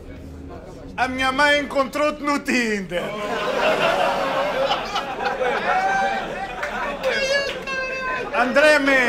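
A young man raps loudly and forcefully, close by.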